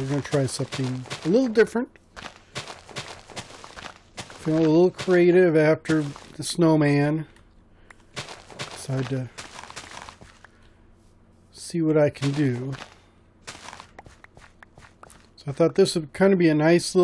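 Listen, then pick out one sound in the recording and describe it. A shovel digs into soft dirt with short, repeated crunches.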